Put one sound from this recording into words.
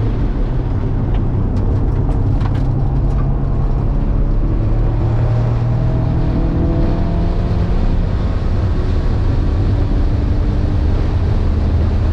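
A car engine roars loudly from inside the cabin, its pitch rising and falling as the car accelerates.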